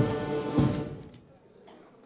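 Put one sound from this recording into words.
A brass band plays a final chord outdoors.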